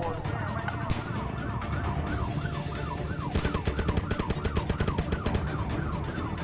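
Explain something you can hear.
A police siren wails nearby.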